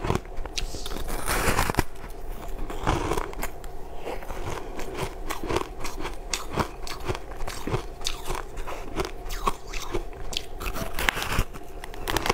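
A woman bites into soft bread.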